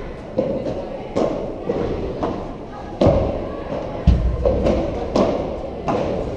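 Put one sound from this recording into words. Paddle rackets hit a ball with sharp pops in a large echoing hall.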